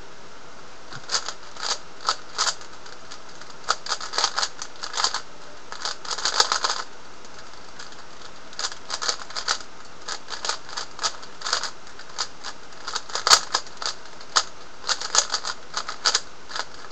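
A puzzle cube clicks and clacks as its layers are turned quickly.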